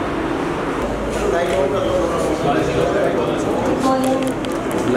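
Adult men and women chatter nearby in a room.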